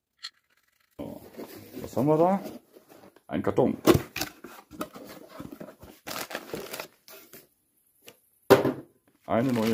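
Cardboard and plastic wrapping rustle and crinkle as a box is opened.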